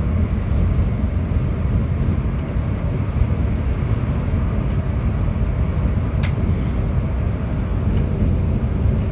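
A bus engine rumbles steadily from inside the cabin.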